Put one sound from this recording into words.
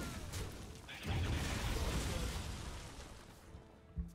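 A loud explosion rumbles from a video game.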